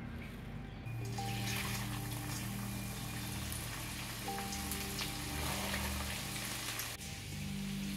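Oil sizzles in a hot pan.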